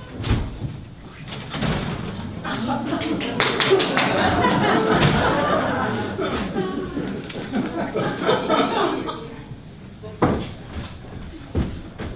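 Footsteps knock on a wooden stage floor.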